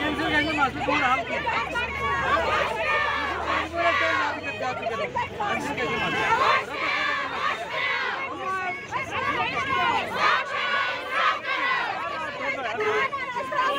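A man speaks firmly over the crowd.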